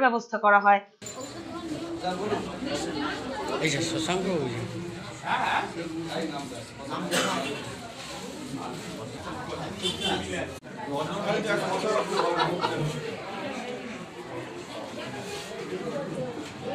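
A crowd of men and women chatter in a busy room.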